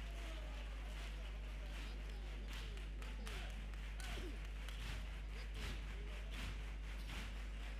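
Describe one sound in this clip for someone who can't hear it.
A group of people on stage claps and knocks.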